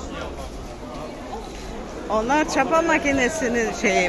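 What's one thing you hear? Many people chatter nearby in a busy crowd.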